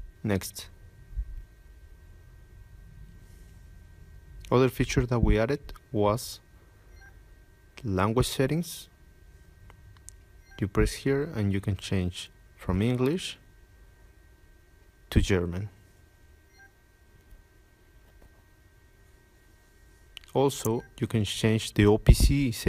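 A man speaks calmly in short phrases, close to the microphone.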